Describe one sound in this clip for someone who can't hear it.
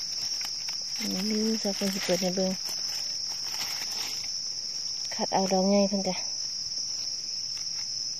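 Dry leaves rustle as a hand pushes them aside.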